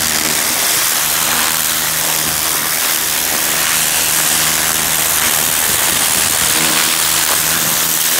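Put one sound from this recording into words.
A garden hose sprays water hard onto loose soil with a steady hiss.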